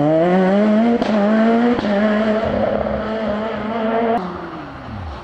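A rally car exhaust pops sharply.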